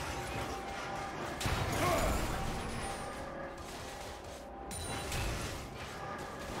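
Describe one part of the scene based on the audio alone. Fantasy battle sound effects of spells and weapons whoosh and crash.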